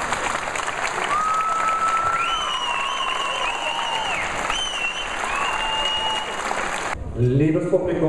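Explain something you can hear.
A crowd cheers and whistles loudly in a large hall.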